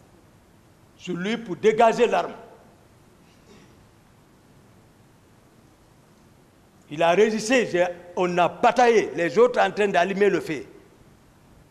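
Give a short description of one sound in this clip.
A man speaks into a microphone in short, animated bursts.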